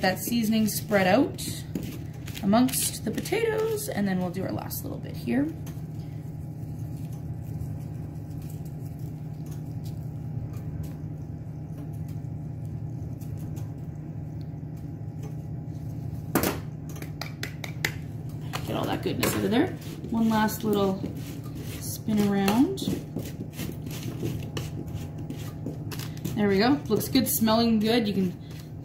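Metal tongs clink against a baking tray.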